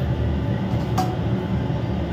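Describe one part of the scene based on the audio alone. A metal lid clinks against a steel pot.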